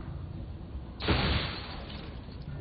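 An explosion bursts loudly, scattering debris.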